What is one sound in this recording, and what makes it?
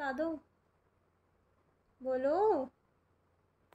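A young girl speaks softly nearby.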